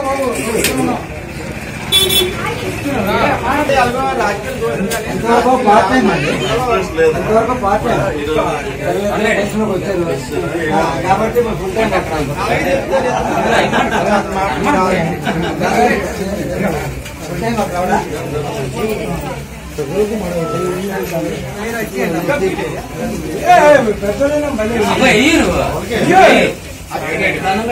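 Several men talk over one another nearby.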